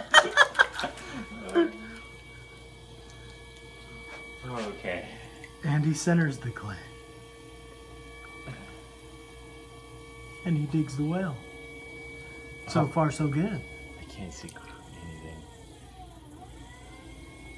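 A potter's wheel hums steadily, then winds down.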